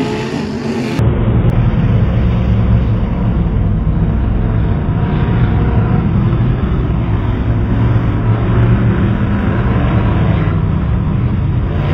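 A race car engine roars loudly.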